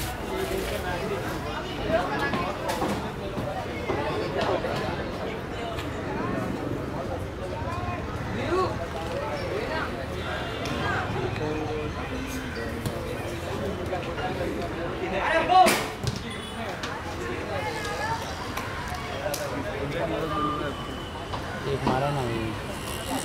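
Young players shout and call out across an open outdoor pitch.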